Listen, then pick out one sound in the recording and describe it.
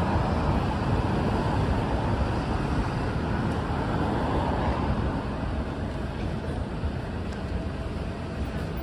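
City traffic rumbles steadily along a busy street.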